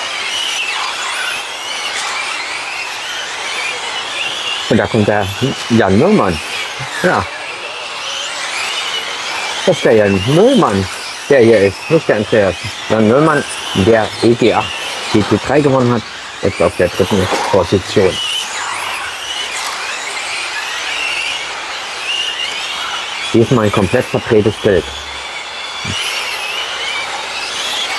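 The whine of model cars rises and falls as they speed up and slow down.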